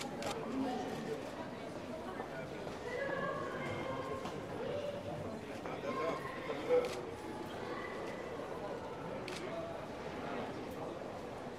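A luggage trolley rolls across the floor.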